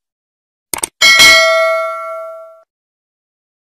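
A bell chimes brightly and rings out.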